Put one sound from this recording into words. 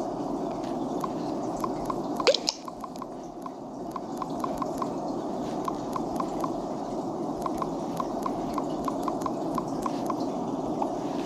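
Soft phone keyboard taps click in quick succession.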